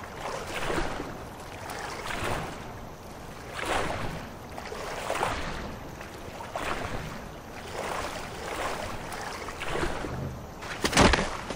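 Water splashes with slow swimming strokes.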